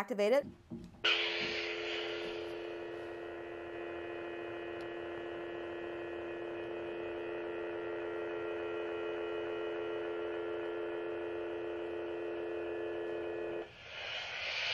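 A toy lightsaber hums steadily.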